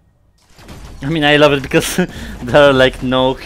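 A young man talks loudly with animation close to a microphone.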